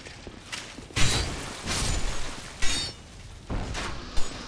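A blade slashes and strikes with heavy thuds.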